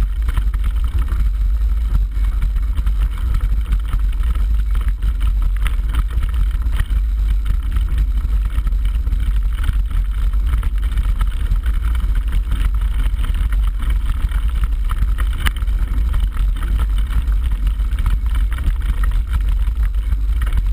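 A bicycle's frame and chain clatter on rough ground.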